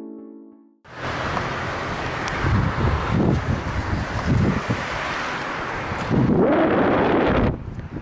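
Wind blows and buffets loudly outdoors.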